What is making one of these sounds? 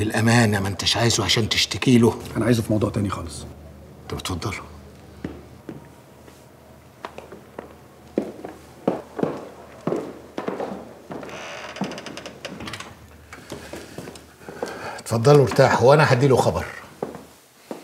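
An elderly man speaks urgently and with emotion, close by.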